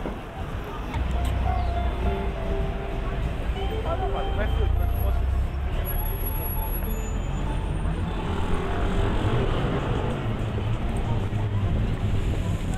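Cars drive past on the road.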